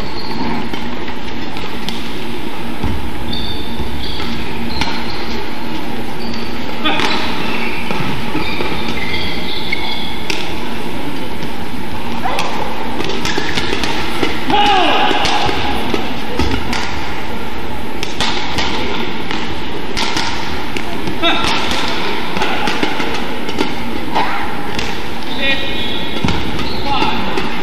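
Badminton rackets smack a shuttlecock back and forth in a large indoor hall.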